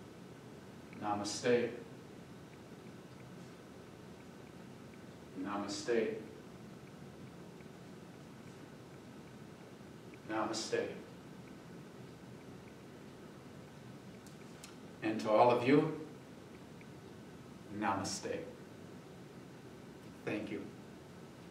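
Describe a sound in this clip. An elderly man speaks short phrases calmly in an echoing room.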